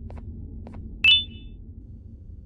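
A short bright chime rings once.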